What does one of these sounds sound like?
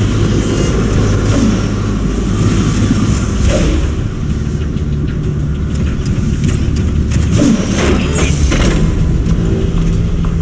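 Heavy metal footsteps clank on a hard floor.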